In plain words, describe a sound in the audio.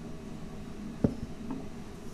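A glass clinks down on a table.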